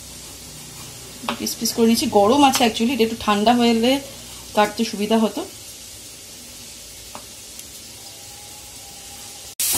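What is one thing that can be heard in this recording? A knife cuts through cooked meat and taps on a wooden board.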